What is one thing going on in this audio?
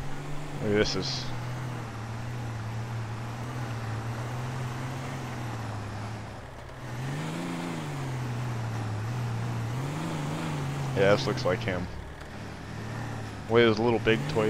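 A truck engine idles nearby with a low rumble.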